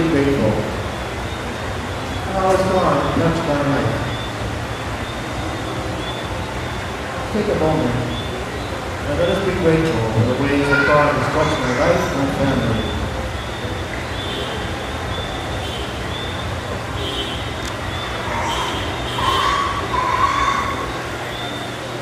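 An elderly man speaks calmly into a microphone, heard through a loudspeaker in an echoing room.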